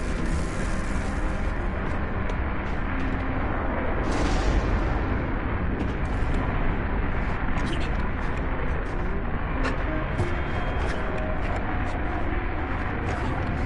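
Footsteps tap lightly on stone.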